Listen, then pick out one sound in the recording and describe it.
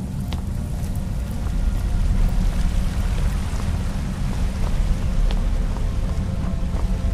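Footsteps tread on stone at a walking pace.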